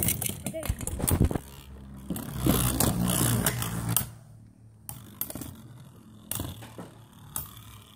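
Spinning tops clack sharply against each other.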